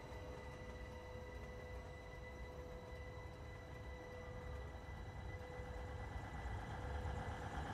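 A train's wheels roll along the rails.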